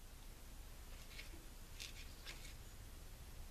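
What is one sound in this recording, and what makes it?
A knife scrapes and cuts softly.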